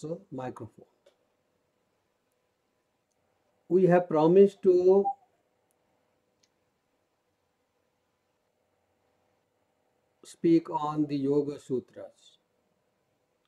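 An elderly man speaks calmly through an online call, in short phrases with long pauses.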